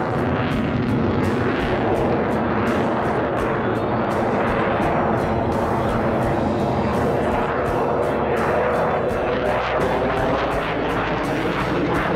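A jet engine roars loudly overhead, rumbling steadily and shifting in pitch.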